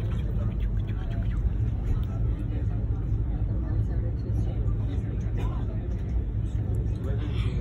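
A train rumbles along steadily.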